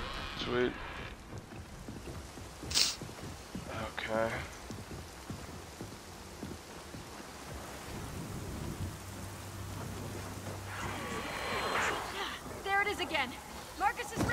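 Heavy boots crunch over rubble and gravel.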